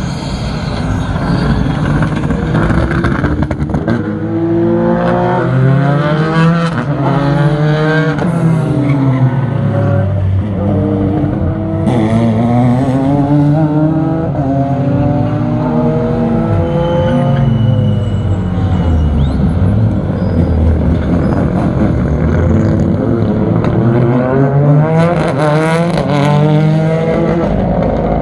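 Rally car engines roar and rev loudly as the cars race past.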